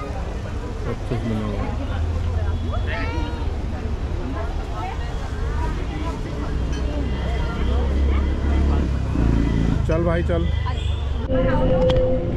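Several people chatter faintly in the background.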